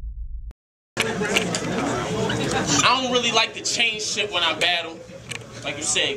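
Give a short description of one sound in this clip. A young man raps loudly into a microphone, heard over loudspeakers.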